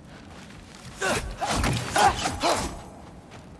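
A heavy weapon swings and strikes with loud blows.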